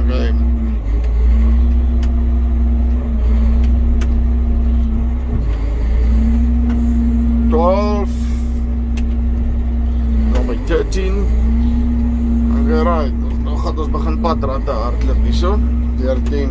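A tractor engine rumbles steadily from inside the cab.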